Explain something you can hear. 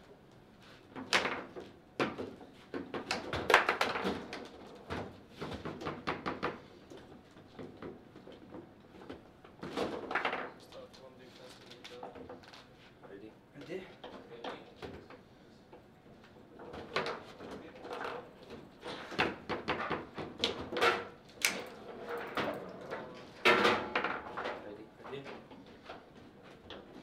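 A ball knocks sharply against plastic figures and walls of a foosball table.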